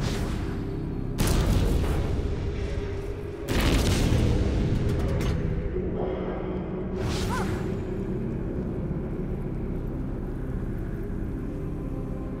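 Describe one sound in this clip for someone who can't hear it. A heavy stone lift rumbles steadily as it moves.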